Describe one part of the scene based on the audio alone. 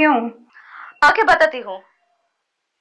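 A young woman answers calmly on a phone.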